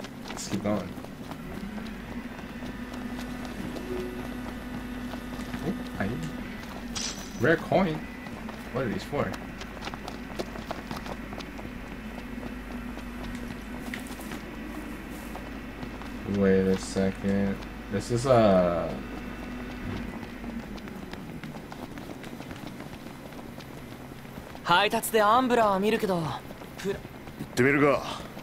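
Footsteps run over a dirt path.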